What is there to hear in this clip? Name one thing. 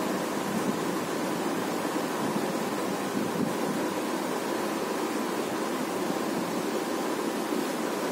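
A cloth rubs softly across a whiteboard.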